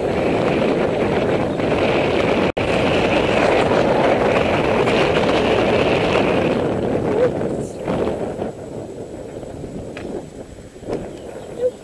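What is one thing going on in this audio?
Wind buffets and rumbles loudly outdoors, easing off toward the end.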